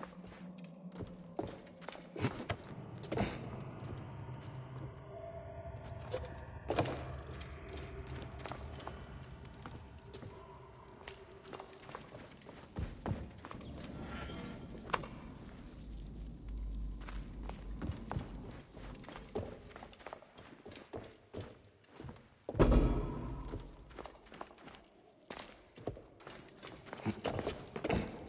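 Footsteps thud and creak on wooden planks.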